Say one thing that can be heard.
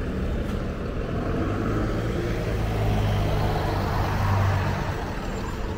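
A motor scooter drives past close by.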